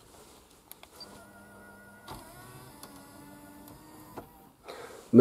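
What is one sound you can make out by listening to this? A small electric motor whirs softly as a panel tilts.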